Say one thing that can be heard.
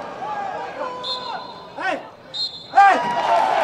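A referee's whistle blows in short blasts.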